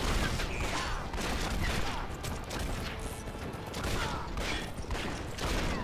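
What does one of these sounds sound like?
A horse gallops with heavy hoofbeats.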